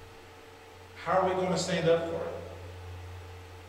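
A man speaks briefly and emphatically into a microphone.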